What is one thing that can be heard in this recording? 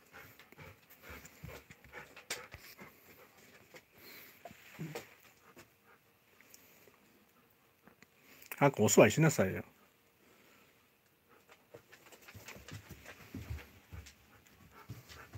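A dog's claws click and patter on a hard floor.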